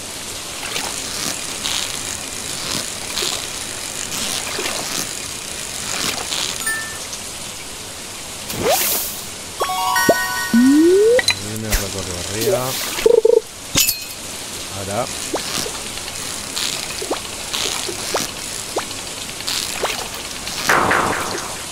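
A fishing reel whirs and clicks in quick bursts.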